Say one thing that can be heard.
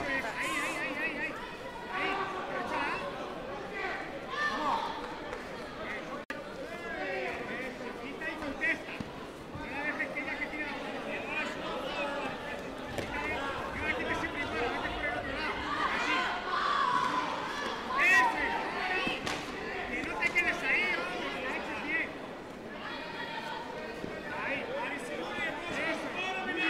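A crowd in a large echoing hall chatters and cheers throughout.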